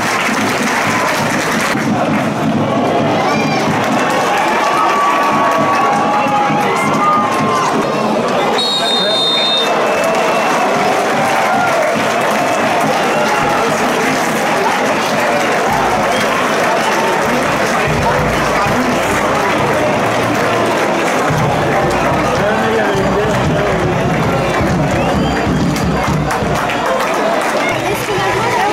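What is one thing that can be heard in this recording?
A large crowd of fans sings and chants loudly outdoors.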